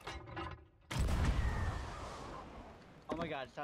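A cannon fires with a deep boom.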